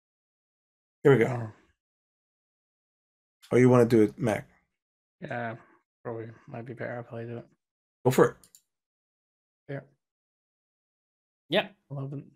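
Adult men talk with animation over an online call, in short bursts.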